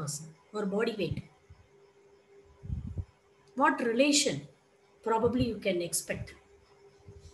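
A young person speaks calmly into a close microphone, in short phrases.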